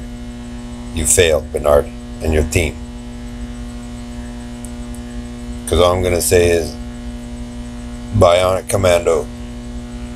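A man speaks close to the microphone in short bursts.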